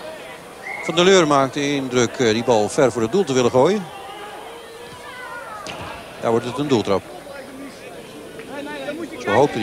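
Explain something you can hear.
A crowd murmurs in a large stadium.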